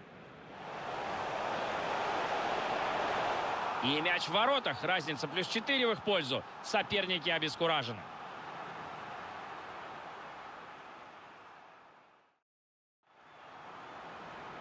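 A large crowd cheers and roars in a big stadium.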